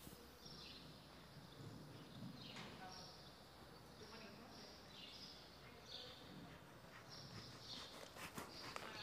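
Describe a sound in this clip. A horse's hooves thud softly and rhythmically on soft ground.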